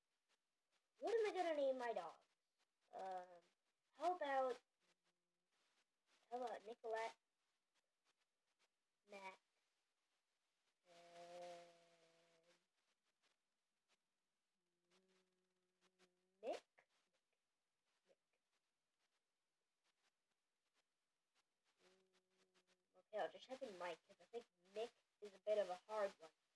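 A young boy talks animatedly close by, in short bursts.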